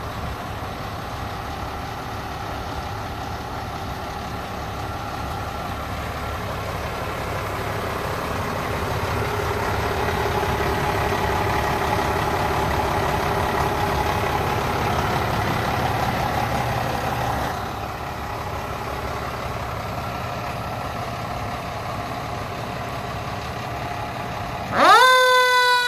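A fire truck engine idles with a steady low rumble.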